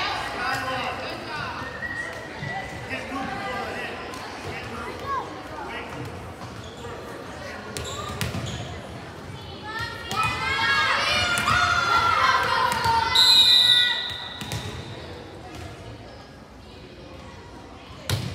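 Young girls call out to each other on the court.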